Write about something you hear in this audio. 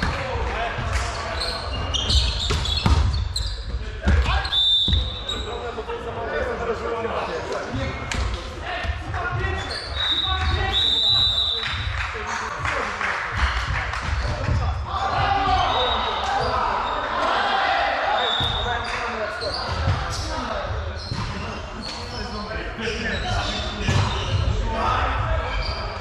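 Several young men call out to each other across the hall.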